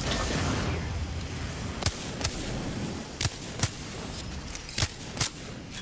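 Gunshots fire in quick single shots.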